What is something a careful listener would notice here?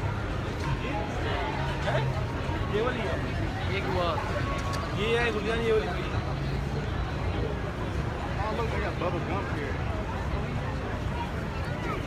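Men and women in a crowd chatter nearby.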